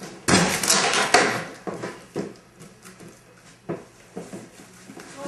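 Cardboard boxes scrape and thump on a hard floor, close by.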